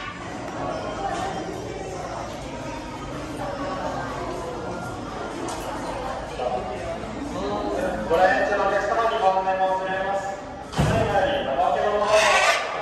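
Several people talk quietly in the background.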